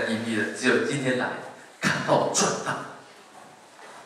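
A woman speaks animatedly through a microphone in an echoing hall.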